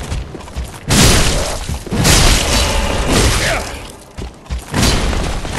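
Heavy swords clash and slam in a loud fight.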